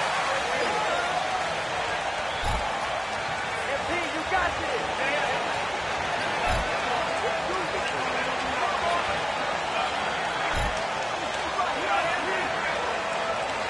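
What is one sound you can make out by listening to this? A large crowd murmurs and chatters in a big echoing arena.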